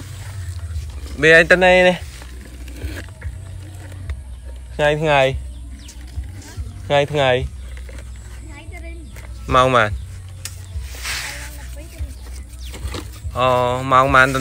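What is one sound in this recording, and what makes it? A plastic toy truck scrapes and rolls over dry dirt.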